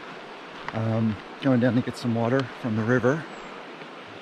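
An older man speaks calmly close by, outdoors.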